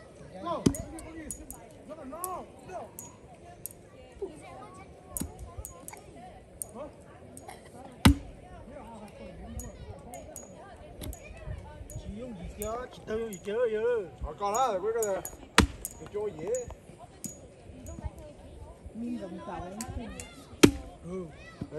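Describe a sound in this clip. An axe chops into a wooden log with sharp thuds.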